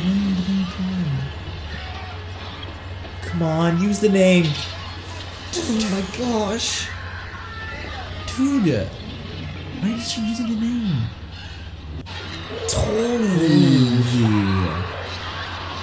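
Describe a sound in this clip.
A young man groans and exclaims in fright close by.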